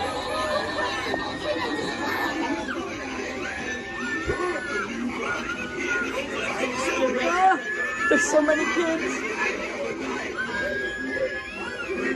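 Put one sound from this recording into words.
A moving animatronic figure talks and cackles in an eerie recorded man's voice through a small loudspeaker.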